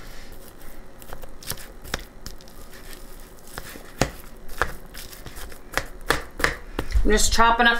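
Hands squish and mix moist food in a plastic bowl.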